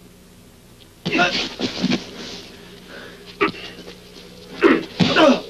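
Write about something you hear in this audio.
Men grunt and shout as they fight.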